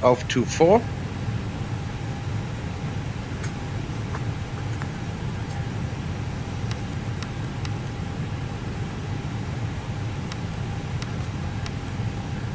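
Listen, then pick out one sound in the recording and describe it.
Jet engines hum with a low, steady rumble.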